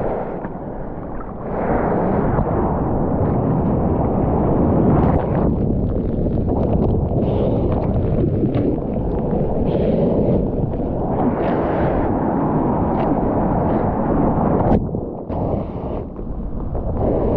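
Sea water rushes and churns close up around a surfboard.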